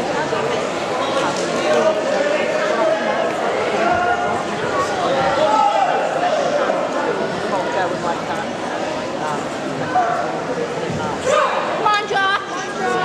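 A crowd of people chatters throughout in a large echoing hall.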